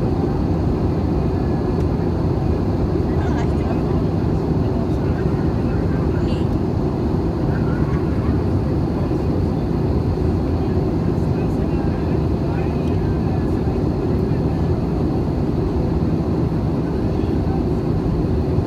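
A jet engine roars steadily, heard from inside an aircraft cabin.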